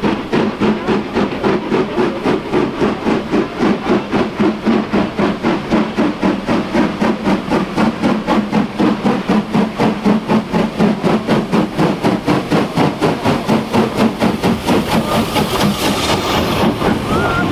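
A steam locomotive chuffs loudly in fast, rhythmic puffs as it passes close by.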